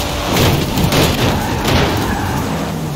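Metal scrapes and grinds as a car sideswipes another car.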